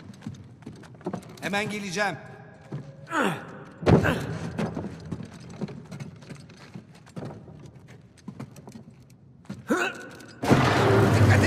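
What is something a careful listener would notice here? Footsteps thud on creaking wooden planks.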